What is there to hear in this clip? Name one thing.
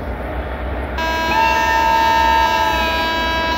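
A locomotive horn blares loudly and steadily.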